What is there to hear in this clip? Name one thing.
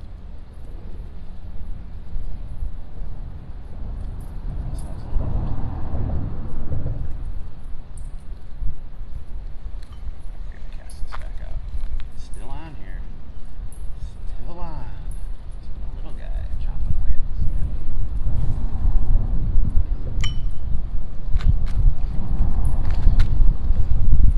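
Wind blows hard across the microphone outdoors.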